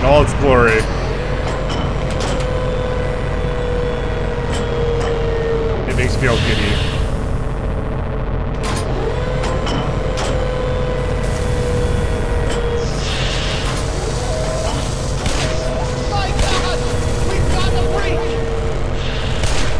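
An energy beam crackles and whines.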